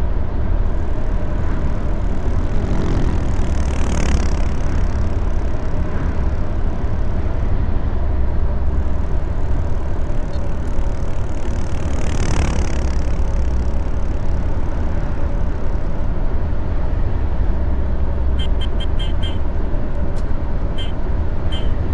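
A bus engine hums steadily as it drives along.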